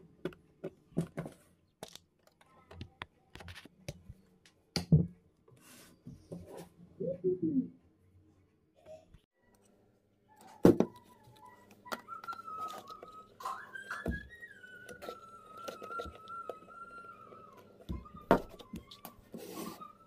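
Cables and plastic parts click and rattle as they are handled up close.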